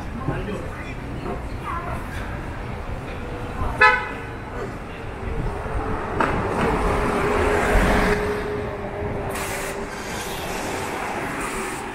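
Traffic rumbles along a street.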